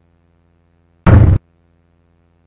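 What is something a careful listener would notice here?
A short electronic game chime sounds.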